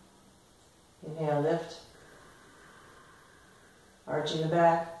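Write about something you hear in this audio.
A woman speaks calmly and softly close to a microphone.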